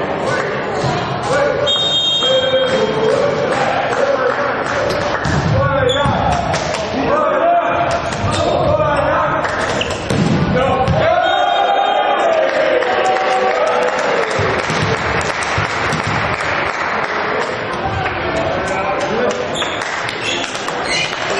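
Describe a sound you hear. Young men shout and cheer in a large echoing hall.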